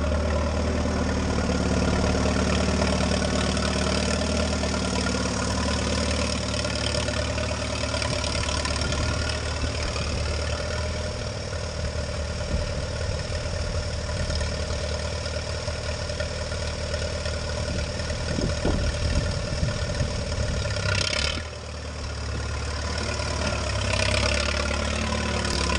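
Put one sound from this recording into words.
A tractor engine rumbles steadily close by, outdoors.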